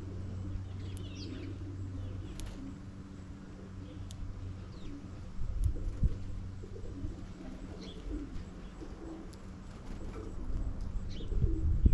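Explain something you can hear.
Small birds chirp nearby.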